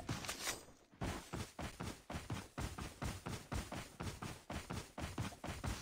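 Footsteps thud quickly and evenly on dry ground.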